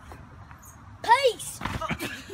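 A young boy cries out sharply as he falls.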